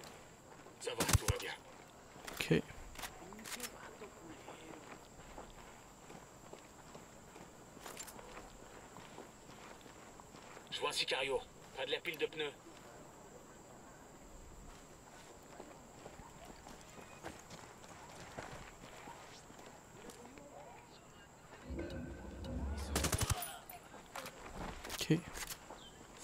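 Rifle shots ring out sharply.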